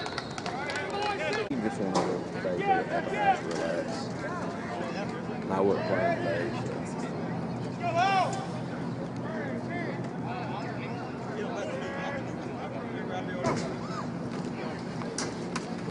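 Men call out loudly across a field.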